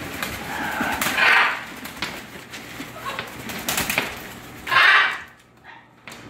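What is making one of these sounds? A parrot squawks loudly.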